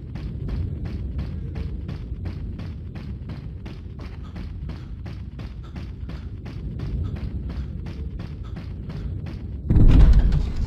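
Footsteps run quickly and evenly over the ground.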